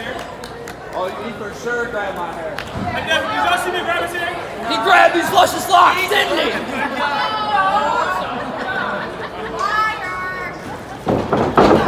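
A man shouts loudly to the crowd.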